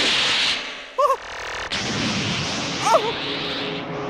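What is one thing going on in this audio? A young man laughs and shouts with excitement.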